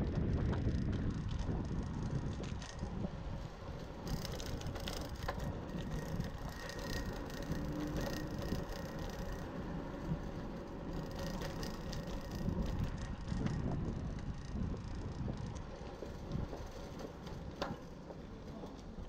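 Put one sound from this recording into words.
Bicycle tyres roll steadily over a paved street.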